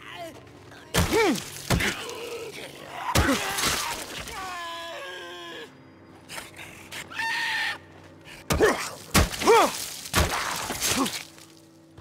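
A heavy blade strikes flesh with loud thuds.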